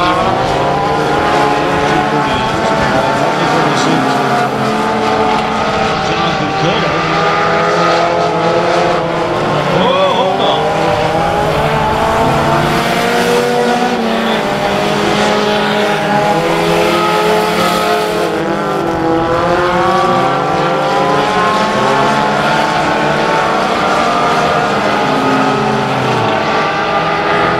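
Several race car engines roar and drone, rising and falling in pitch as the cars speed by.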